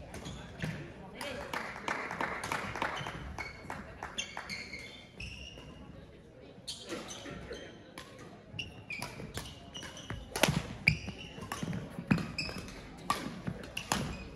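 Sports shoes squeak sharply on the hall floor.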